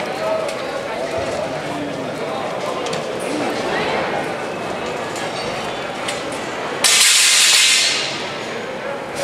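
A crowd of men shouts in the distance outdoors.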